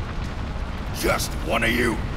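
An older man speaks in a gruff, deep voice close by.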